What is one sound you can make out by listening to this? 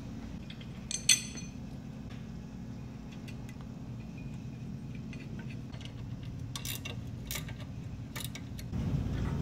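Metal parts clink and click as a bracket is fitted.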